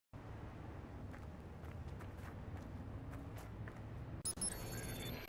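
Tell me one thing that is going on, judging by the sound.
Footsteps tread steadily over rough ground.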